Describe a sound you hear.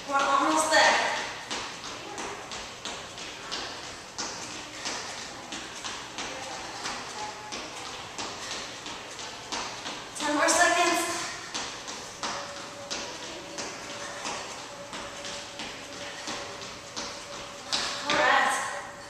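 Feet thump in a steady rhythm on a wooden floor.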